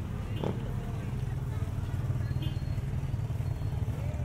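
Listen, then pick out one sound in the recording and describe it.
A motorbike engine rumbles close by.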